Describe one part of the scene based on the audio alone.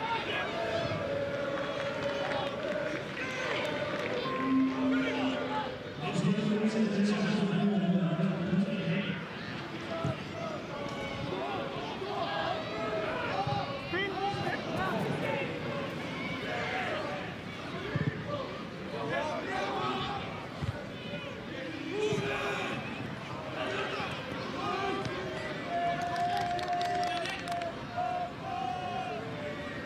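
A large crowd chants and cheers in an open stadium.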